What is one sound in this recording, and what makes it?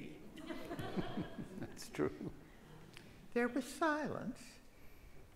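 An elderly woman speaks calmly in a room.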